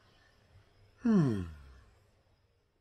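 A middle-aged man lets out a long falling moan.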